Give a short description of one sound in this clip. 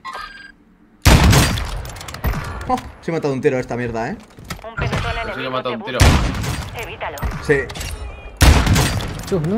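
Loud gunshots boom and echo.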